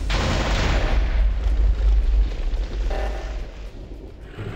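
Explosions rumble and crackle.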